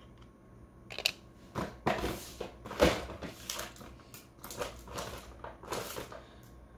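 A small plastic board clicks and rattles as it is handled up close.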